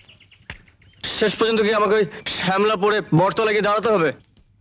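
A young man speaks earnestly, close by.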